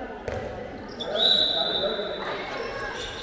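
A referee's whistle blows a long shrill blast in an echoing hall.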